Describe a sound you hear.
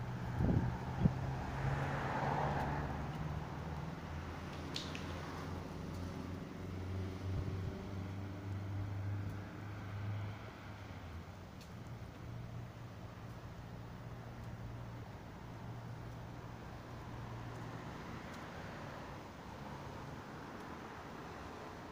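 Cars pass by on a street outdoors with a steady traffic rumble.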